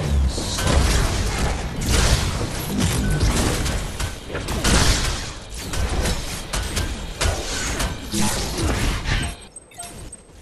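Loud bursts of fighting effects crash and rumble.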